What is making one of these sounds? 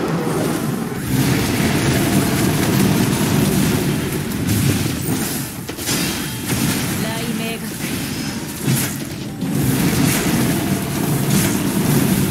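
Loud electric crackling and blasts go off in rapid bursts.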